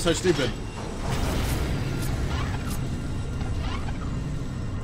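A magical blast bursts with a crackling whoosh.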